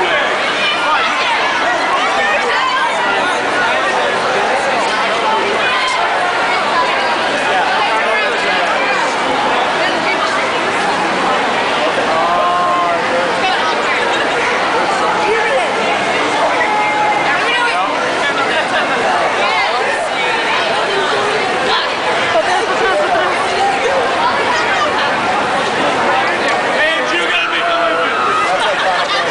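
A crowd of young people chatters and shouts loudly in a large echoing hall.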